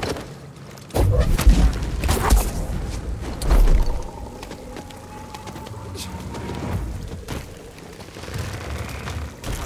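A dense swarm of small creatures rushes and flutters past.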